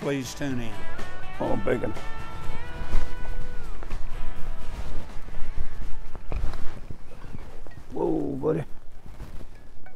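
A man talks calmly nearby, outdoors.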